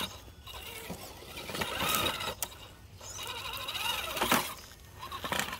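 A small electric motor whines in bursts.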